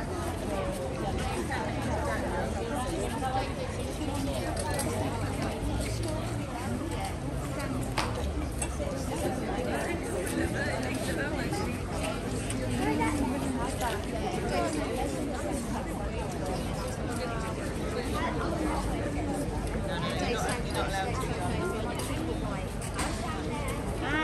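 A horse's hooves clop on stone.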